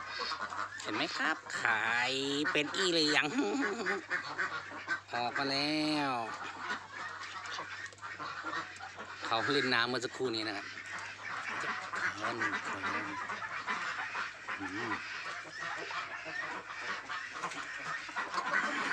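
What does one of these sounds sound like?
A large flock of ducks quacks loudly and continuously.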